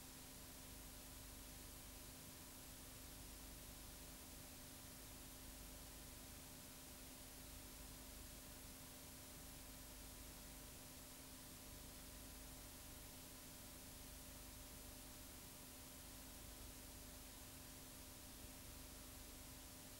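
Television static hisses steadily.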